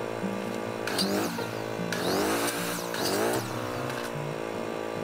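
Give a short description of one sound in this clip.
A circular saw whirs up and winds down.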